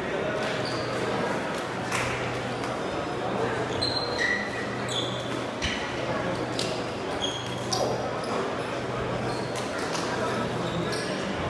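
Shuttlecocks are hit with rackets in quick pops.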